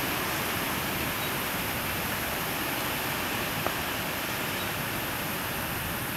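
Chopsticks scrape and tap against food on leaves.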